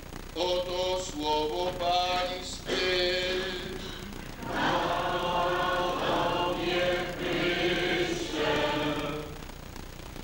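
An elderly man sings a slow chant through a microphone.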